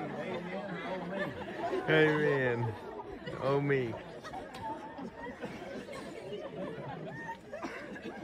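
Adults murmur and chat softly outdoors.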